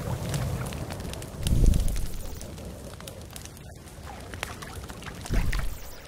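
A small campfire crackles.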